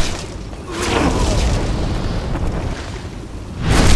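A fire bursts with a loud whoosh.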